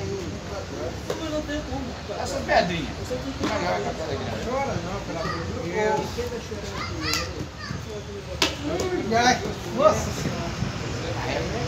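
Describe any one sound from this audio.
Several men talk nearby in a lively way.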